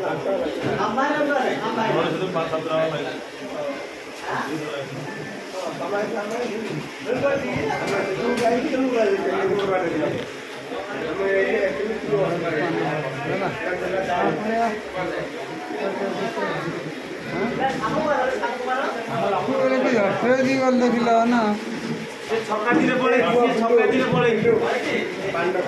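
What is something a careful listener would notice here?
Men talk nearby in a lively way.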